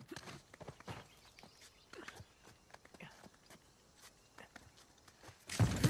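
Hands scrape and grip on a stone wall during a climb.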